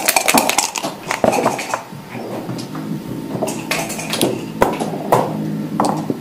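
Game pieces click and clack as they are moved on a wooden board.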